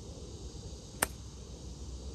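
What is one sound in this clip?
A golf club strikes a ball with a sharp crack.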